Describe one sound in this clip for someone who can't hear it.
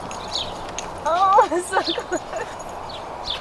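A young woman calls out in a high, excited voice nearby.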